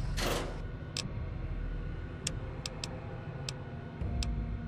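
Menu selections click sharply.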